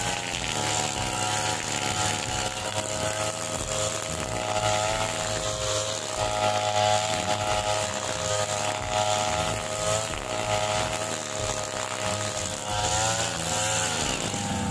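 A petrol string trimmer engine whines steadily close by, rising and falling in pitch.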